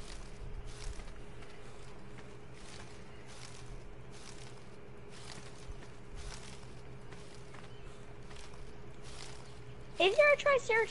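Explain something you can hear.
Leafy bushes rustle in quick, repeated bursts as they are picked.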